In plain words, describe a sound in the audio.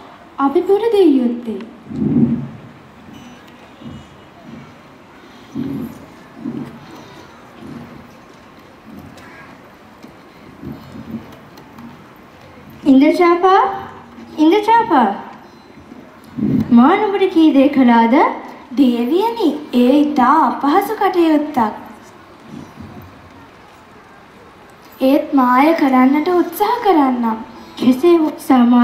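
Young girls speak dramatically through loudspeakers.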